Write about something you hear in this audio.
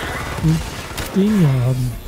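Game gunfire rattles in short bursts.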